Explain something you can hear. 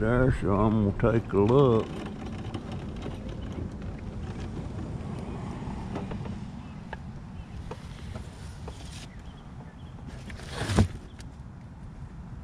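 A small electric scooter motor hums steadily.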